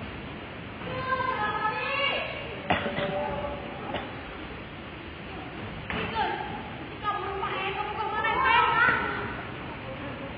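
A woman speaks loudly from a stage in a large echoing hall.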